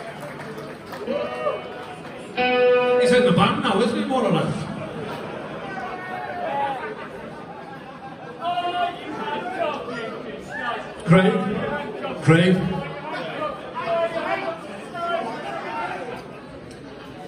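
A man talks calmly through a loudspeaker in a large echoing hall.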